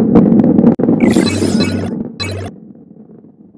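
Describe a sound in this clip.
A bright chime rings as coins are collected.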